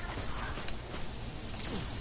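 A gun fires in a video game.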